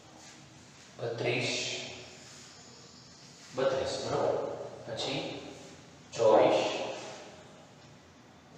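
A middle-aged man speaks calmly into a headset microphone.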